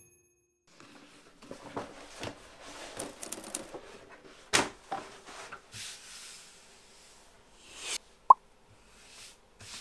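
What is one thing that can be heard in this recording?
A large sheet of stiff leather crackles and rustles as hands unroll and smooth it.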